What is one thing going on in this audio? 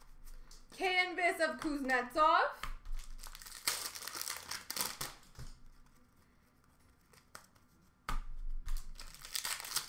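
Cards rustle and flick as they are shuffled through by hand.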